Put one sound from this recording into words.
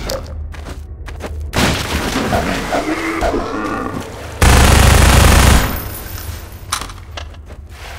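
Gunshots fire in quick bursts in a tunnel, echoing.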